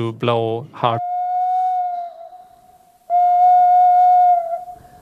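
A woman blows a steady, high whistle-like tone on a recorder.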